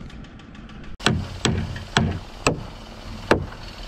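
Wood knocks sharply against a wooden beam several times.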